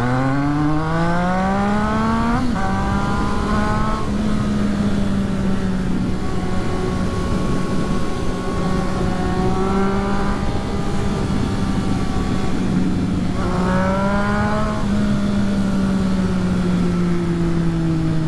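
Wind rushes past, low and steady.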